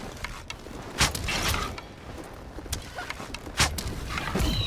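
A bow twangs as arrows fly.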